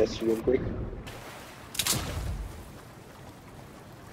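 Water splashes.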